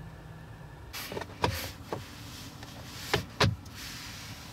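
A plastic compartment lid clicks and snaps shut.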